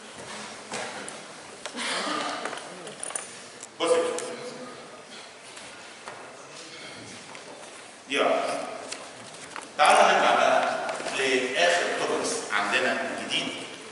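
An elderly man lectures through a clip-on microphone.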